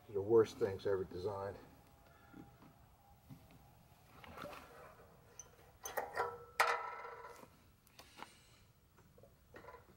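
A plastic fuel can bumps and rattles as it is handled.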